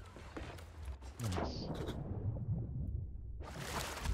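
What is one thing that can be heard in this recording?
Water splashes as something plunges under the surface.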